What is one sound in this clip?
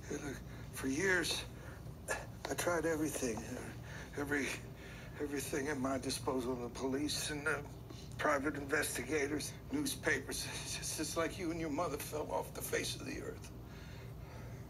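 An elderly man speaks gruffly through a television speaker.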